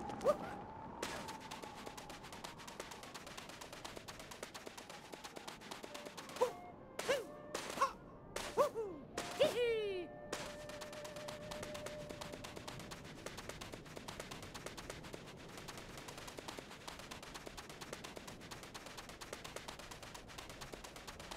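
Quick footsteps patter through soft sand.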